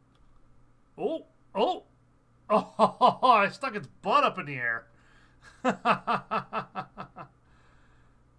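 A man speaks excitedly into a close microphone.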